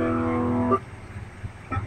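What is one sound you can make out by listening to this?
An electric guitar chord rings out briefly and is cut short.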